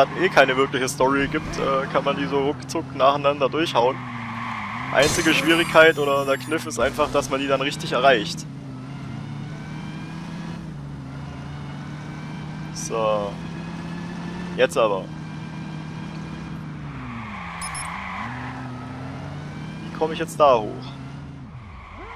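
Car tyres screech as the car skids around corners.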